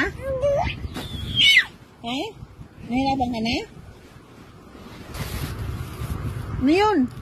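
A baby coos and babbles up close.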